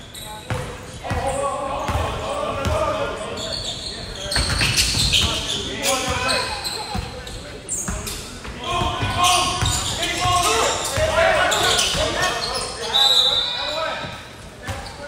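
Young men shout to each other across the gym.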